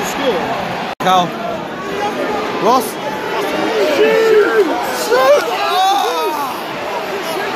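A young man shouts and cheers excitedly close by.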